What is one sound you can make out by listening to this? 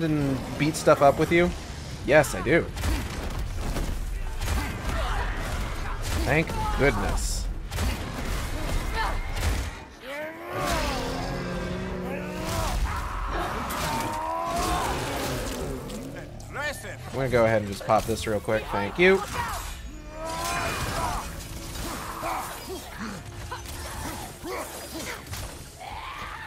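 Heavy blows land in a fight, with thuds and clangs.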